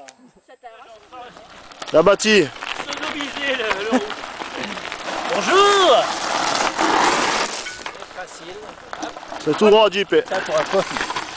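Bicycle tyres crunch over loose gravel.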